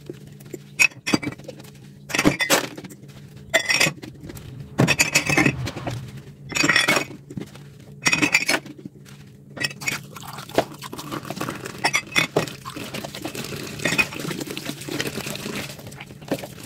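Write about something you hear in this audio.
A sponge squelches as it scrubs a glass mug.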